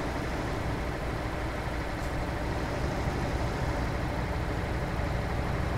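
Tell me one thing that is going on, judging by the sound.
A truck's diesel engine rumbles steadily as it drives along a road.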